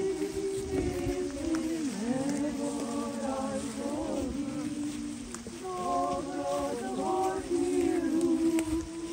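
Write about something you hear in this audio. A crowd of men and women sings together slowly outdoors.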